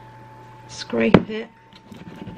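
A glass jar knocks down onto a hard table.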